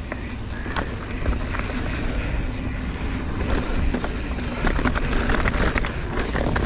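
Bicycle tyres crunch and roll over a dirt trail.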